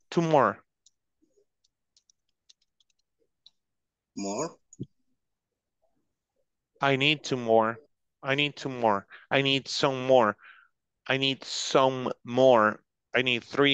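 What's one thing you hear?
A woman speaks calmly in short phrases, heard through an online call.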